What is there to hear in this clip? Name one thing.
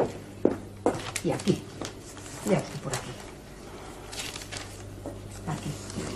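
Papers rustle as they are handled.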